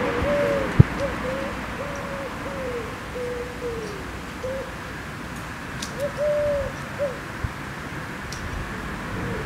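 Pruning shears snip sharply a few times.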